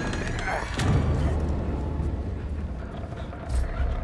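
Heavy footsteps thud on a wooden floor.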